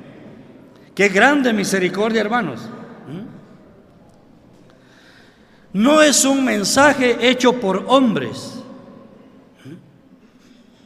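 An elderly man speaks calmly into a microphone in a large echoing hall, with pauses between phrases.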